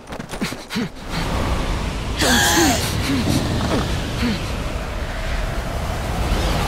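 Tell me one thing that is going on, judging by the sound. A strong wind roars and whooshes.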